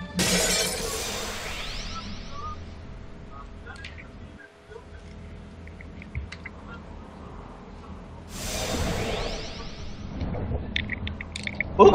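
Magic spells whoosh and chime in a game.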